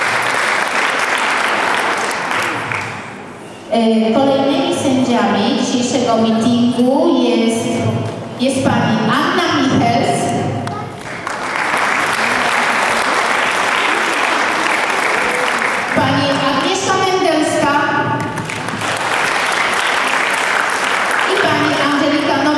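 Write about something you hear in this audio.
A crowd claps in a large echoing hall.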